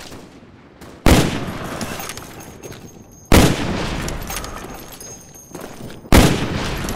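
Sniper rifle shots boom loudly and echo away.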